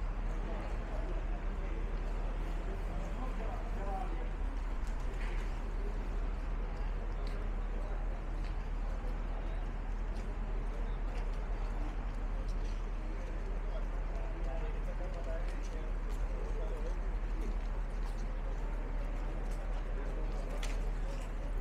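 Footsteps shuffle on a stone floor.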